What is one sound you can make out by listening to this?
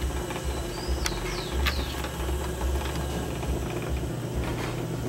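A potter's wheel hums steadily as it spins.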